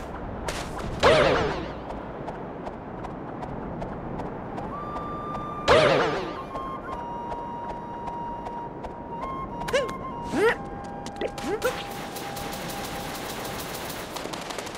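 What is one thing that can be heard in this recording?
Bright game sound effects chime and whoosh.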